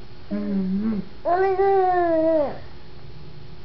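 A toddler squeals in a high sing-song voice close by.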